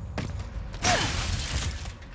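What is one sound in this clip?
Debris bursts apart with a loud crash.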